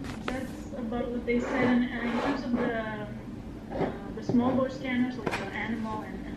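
A ceramic plant pot scrapes as it is turned on a wooden surface.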